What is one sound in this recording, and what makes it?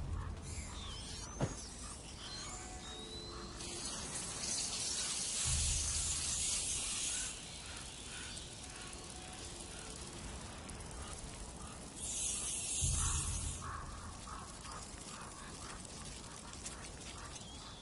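A torch flame crackles and roars.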